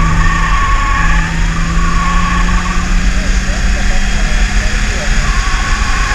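A race car engine roars steadily and climbs slowly in pitch as the car speeds up.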